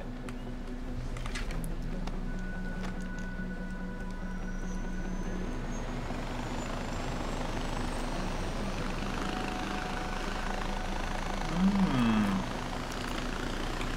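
A small aircraft engine drones steadily.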